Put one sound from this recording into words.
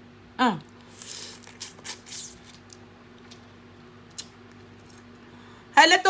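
A middle-aged woman chews and slurps food close to a microphone.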